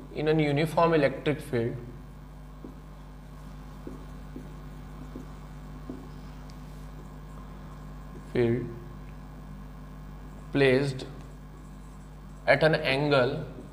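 A man speaks calmly, as if explaining, heard close by.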